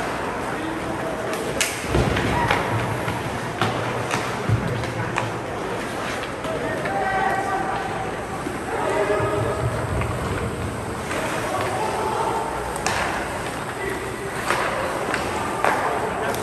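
Ice skates scrape and carve across the ice in a large echoing rink.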